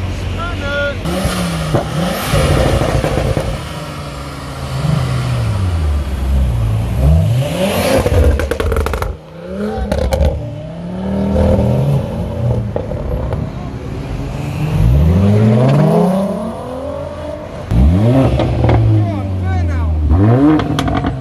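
A car engine revs loudly up and down, rising and falling in pitch.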